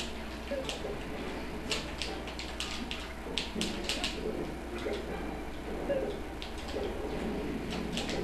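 Fiery blasts from a fighting game burst and crackle.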